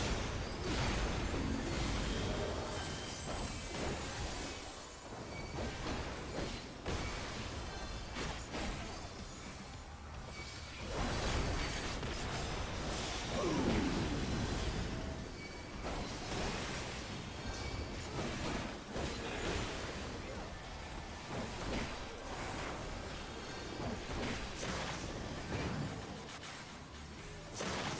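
Game music plays throughout.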